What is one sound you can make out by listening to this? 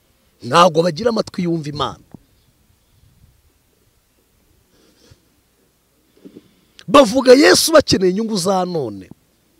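A man speaks with animation into a microphone, close by, pausing between phrases.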